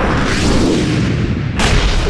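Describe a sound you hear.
A man shouts loudly and angrily.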